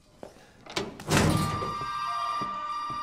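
A heavy door creaks open with a loud clunk.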